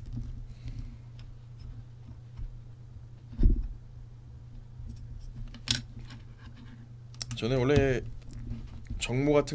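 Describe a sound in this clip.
Plastic toy bricks click and rattle softly as they are handled.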